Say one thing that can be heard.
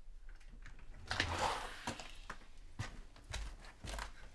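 A front door opens with a click of the latch.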